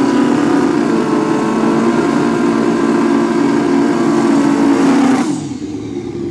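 A motorcycle's rear tyre screeches as it spins in place.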